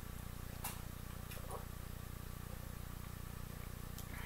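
A young woman sips a drink.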